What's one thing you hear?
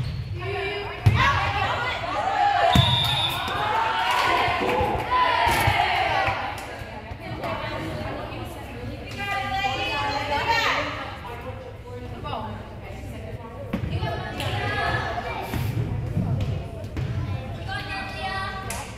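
Young women players shout and call out to each other on the court.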